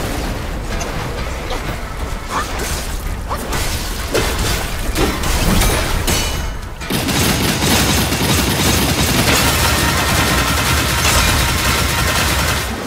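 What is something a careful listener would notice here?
Water splashes heavily as a huge creature thrashes.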